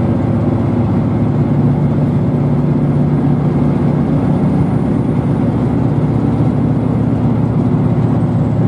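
A vehicle's engine hums and rumbles steadily from inside while it drives along.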